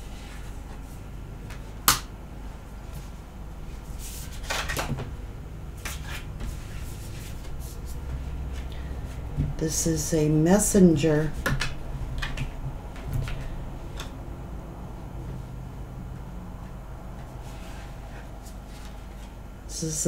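Cards shuffle and tap on a table.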